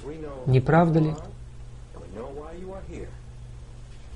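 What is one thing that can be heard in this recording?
An elderly man speaks calmly and earnestly, close to a microphone.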